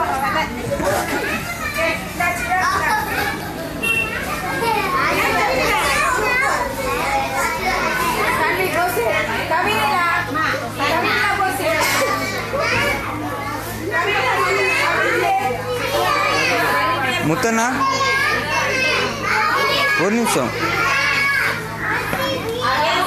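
Many young children chatter and shout excitedly close by.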